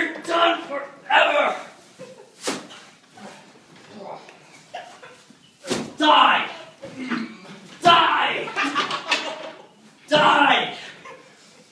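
Bodies thump and crash onto a couch.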